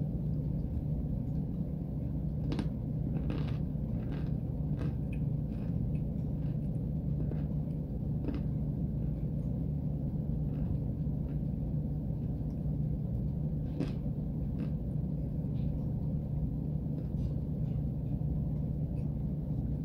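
A woman chews a mouthful of cornstarch wetly, close to the microphone.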